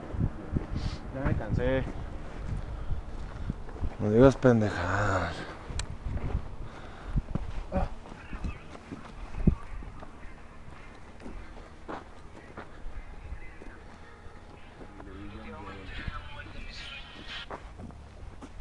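Young men talk and shout nearby outdoors.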